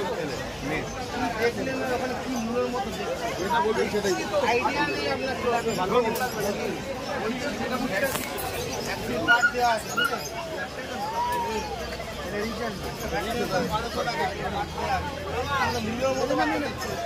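A crowd of men and women chatters all around, close by.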